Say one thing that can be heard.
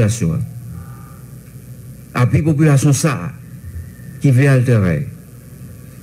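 A man speaks formally into a microphone, heard over a loudspeaker with pauses between phrases.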